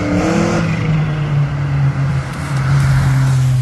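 Another car engine hums steadily as it drives closer.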